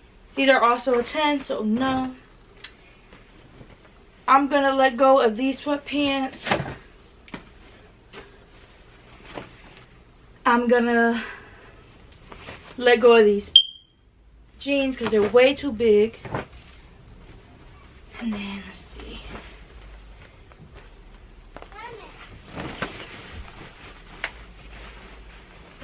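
Clothes rustle as they are handled and folded.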